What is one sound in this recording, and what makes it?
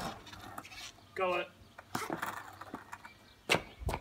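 Skateboard wheels roll on tarmac.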